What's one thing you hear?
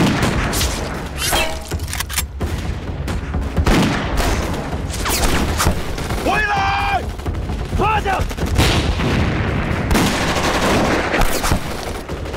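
Rifles fire in rapid sharp bangs.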